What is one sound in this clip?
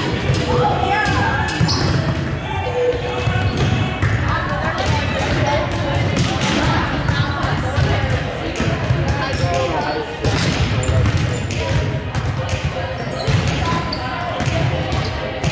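Volleyballs thump off hands and arms in a large echoing gym.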